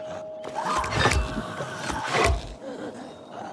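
An arrow hits with a loud thud.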